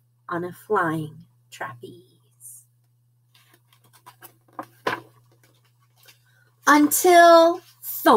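A woman reads a story aloud close to the microphone.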